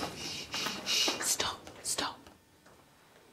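A man whispers close by.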